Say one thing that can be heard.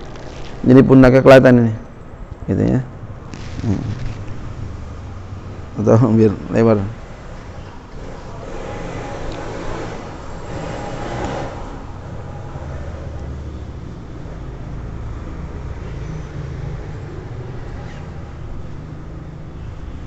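Cloth rustles as a man handles and shakes out a garment.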